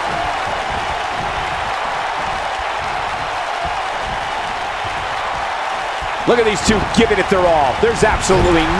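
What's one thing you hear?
A large crowd cheers and murmurs steadily in an echoing arena.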